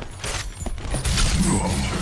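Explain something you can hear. An electric beam zaps and crackles.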